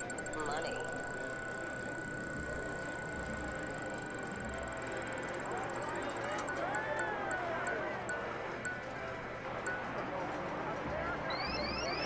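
A prize wheel spins.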